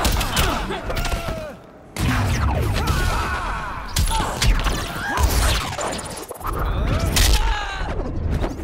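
Bursts of energy blast and rumble.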